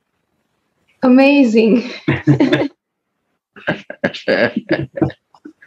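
A middle-aged woman laughs over an online call.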